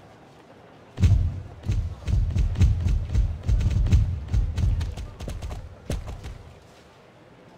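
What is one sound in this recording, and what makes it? Horse hooves thud past at a gallop.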